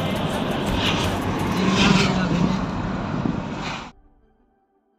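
Tyres hum on the road surface.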